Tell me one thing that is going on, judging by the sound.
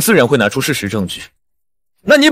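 A young man speaks sternly.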